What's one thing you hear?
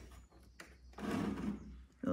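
A wooden door creaks as it is pushed.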